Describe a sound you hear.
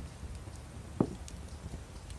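A clay pot knocks down onto a wooden shelf.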